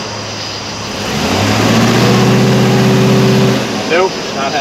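A truck engine idles and revs loudly.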